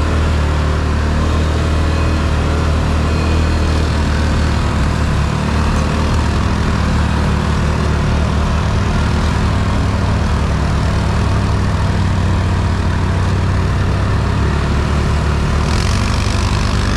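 A quad bike engine rumbles steadily up close.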